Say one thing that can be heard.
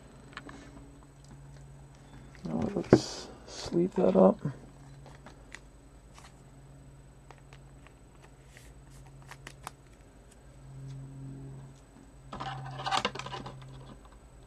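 Trading cards slide and rustle in a hand.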